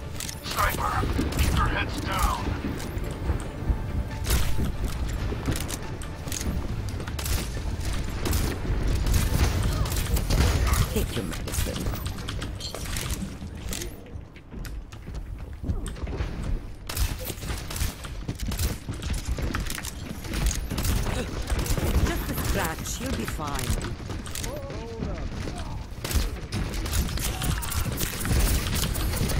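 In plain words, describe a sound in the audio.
A rifle fires in quick bursts of shots.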